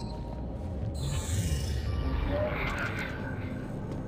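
A holographic display crackles with electronic static and chimes as it switches on.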